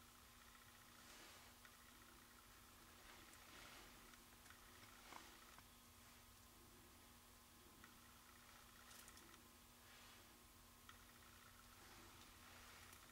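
Paper rustles faintly under fingers.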